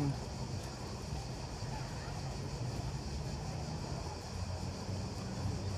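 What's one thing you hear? Gentle waves lap softly at the shore.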